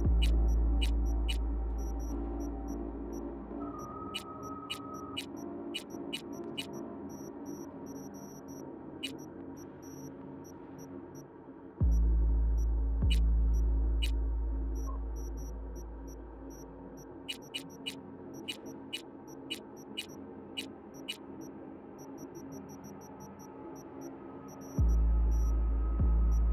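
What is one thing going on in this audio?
Short electronic menu clicks tick as a list is scrolled and items are selected.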